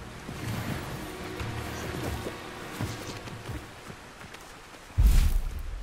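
Footsteps crunch on grass and gravel.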